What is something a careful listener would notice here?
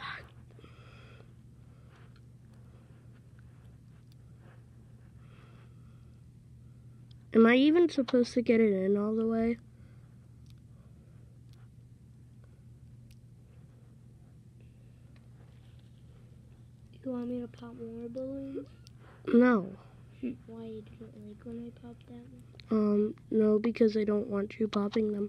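Small plastic toy parts click and snap together.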